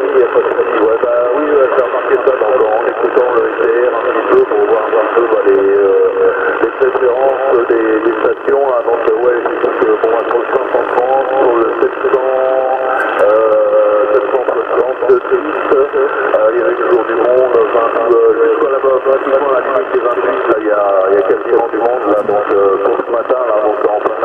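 A man's voice speaks through a crackly, thin radio loudspeaker.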